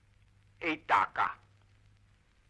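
An elderly man speaks calmly and closely.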